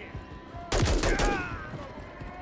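A rifle fires a single loud shot with a ringing echo.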